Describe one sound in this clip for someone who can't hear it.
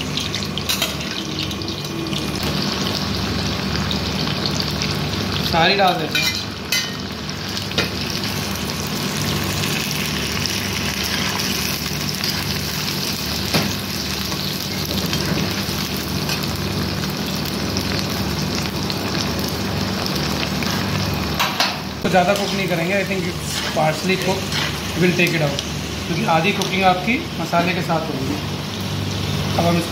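Oil sizzles steadily in a pan.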